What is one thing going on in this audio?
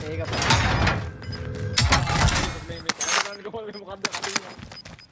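Gunshots bang in quick bursts from a video game.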